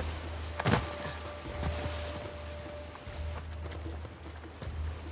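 Footsteps rustle through dense leafy undergrowth.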